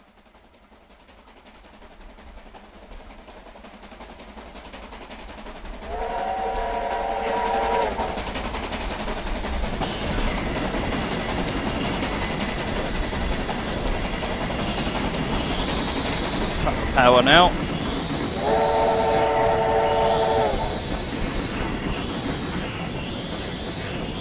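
A steam locomotive approaches and rumbles past, growing louder.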